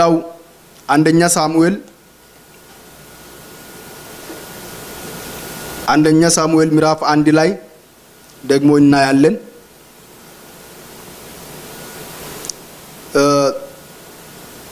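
A young man speaks calmly into a microphone, in short phrases with long pauses.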